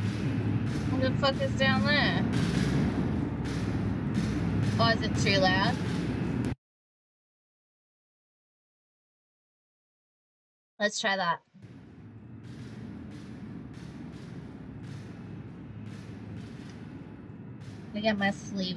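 A young woman talks into a microphone.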